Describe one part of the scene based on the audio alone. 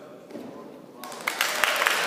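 A gymnast lands with a thud on a mat in a large echoing hall.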